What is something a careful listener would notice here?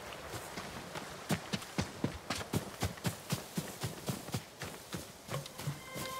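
Footsteps run quickly over grass and leaves.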